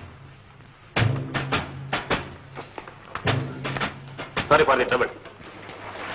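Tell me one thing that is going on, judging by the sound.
A man speaks sternly, close by.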